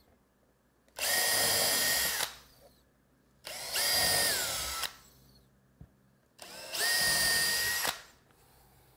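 A cordless drill whirs in short bursts, boring into wood.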